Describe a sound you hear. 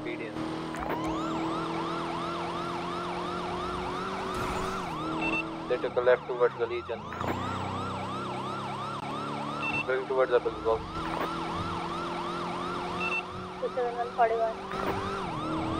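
A police siren wails rapidly.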